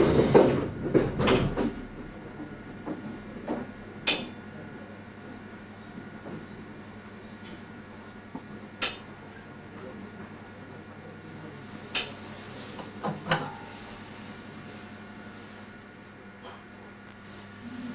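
A stationary train hums steadily at a platform.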